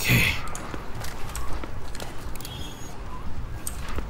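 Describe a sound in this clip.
A revolver clicks as it is drawn and handled.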